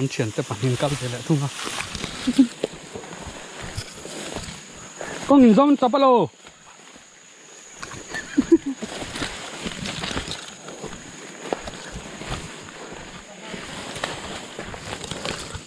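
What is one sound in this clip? Tall grass rustles and swishes as people push through it.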